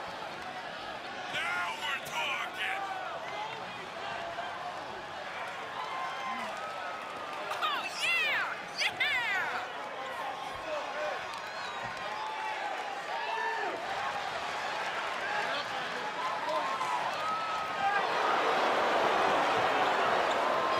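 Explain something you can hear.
A large crowd cheers and whistles in a big echoing arena.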